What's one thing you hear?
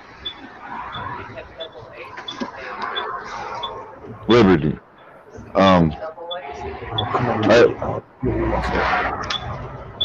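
A young man talks casually over an online call.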